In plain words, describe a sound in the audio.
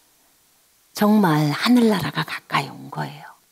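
A middle-aged woman speaks warmly and clearly into a microphone, close by.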